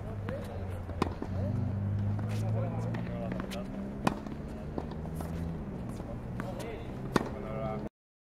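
A tennis racket strikes a ball with sharp, hollow pops.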